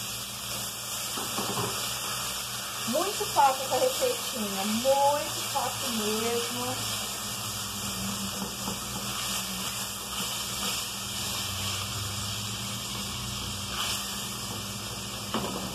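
A spatula stirs and scrapes inside a cooking pot.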